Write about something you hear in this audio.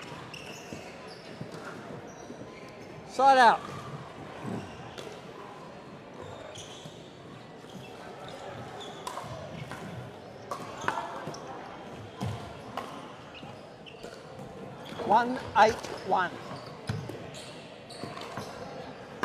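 Paddles strike a plastic ball with sharp pops in a large echoing hall.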